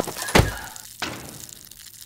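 A small fire crackles.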